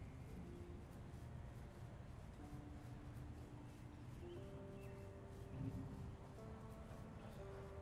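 Footsteps tread softly on the ground.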